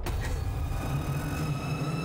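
A young woman screams in terror.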